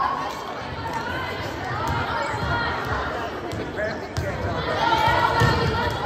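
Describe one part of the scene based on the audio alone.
A volleyball is bumped and hit.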